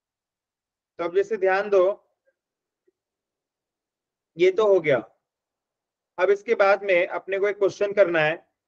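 A young man speaks calmly through a microphone in short bursts.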